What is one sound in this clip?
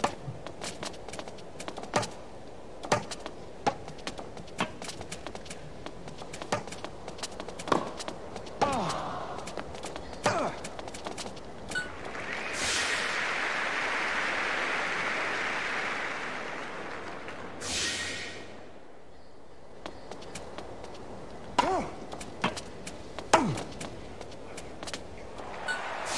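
Tennis rackets hit a ball back and forth in a rally.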